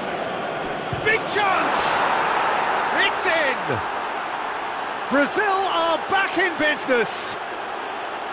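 A stadium crowd cheers loudly after a goal.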